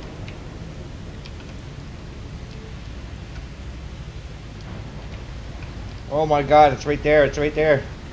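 Rain patters steadily outdoors.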